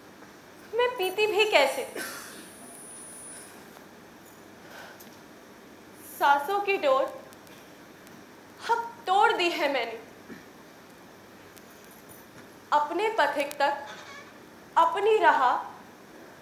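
A young woman speaks with emotion in short, pausing bursts.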